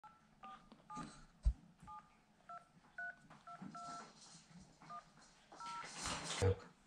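A phone beeps in short tones.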